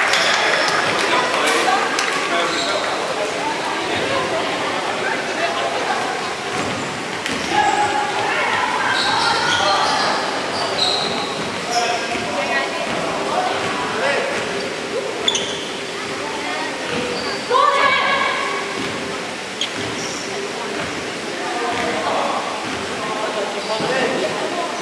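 Many children shout and chatter in a large echoing hall.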